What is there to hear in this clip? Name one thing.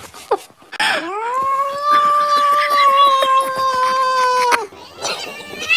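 A kitten meows loudly in a long, drawn-out cry.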